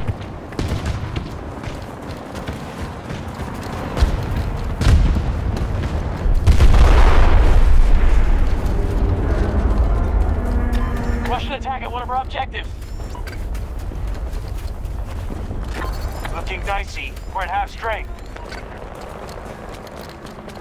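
Footsteps crunch quickly over snow and gravel.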